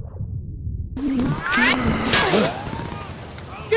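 A man shouts.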